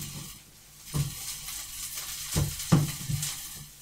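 A metal utensil knocks against a pan.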